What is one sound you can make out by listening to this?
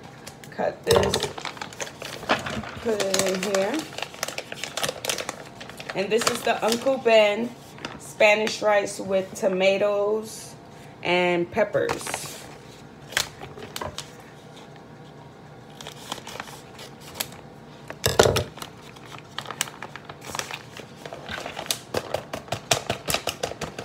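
A plastic packet crinkles as it is handled.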